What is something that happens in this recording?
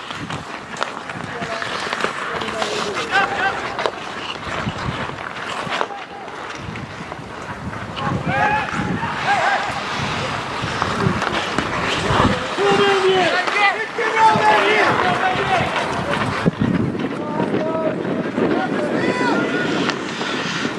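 Players shout to each other outdoors across an open rink.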